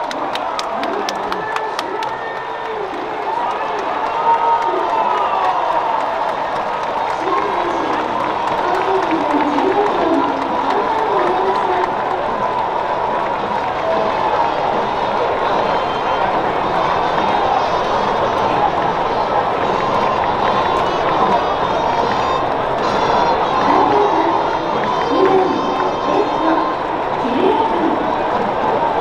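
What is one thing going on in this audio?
Men cheer and shout with excitement nearby.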